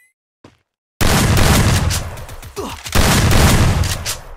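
Explosions boom and smoke hisses loudly.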